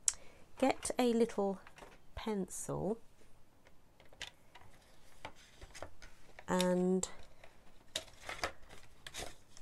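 Stiff card rustles and taps softly as hands handle it.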